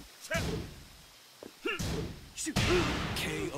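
Heavy punches land with loud smacking hits.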